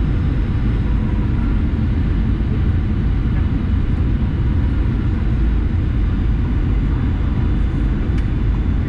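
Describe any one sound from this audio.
A jet engine roars steadily inside an airliner cabin in flight.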